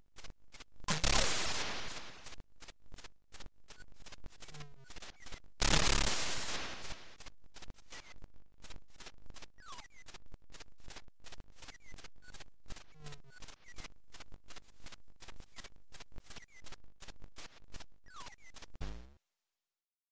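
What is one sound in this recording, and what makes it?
Fast beeping computer game music plays.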